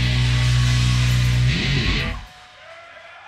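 A rock band plays loudly in an echoing room.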